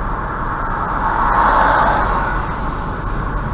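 A vehicle passes close by with a brief whoosh.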